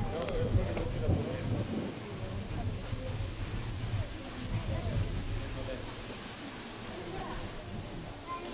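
Wind blows against the microphone outdoors.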